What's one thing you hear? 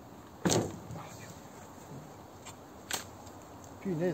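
A bee smoker puffs in short bursts.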